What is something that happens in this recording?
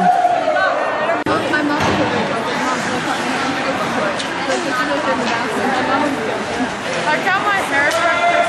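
Spectators chatter and shout in a large echoing rink.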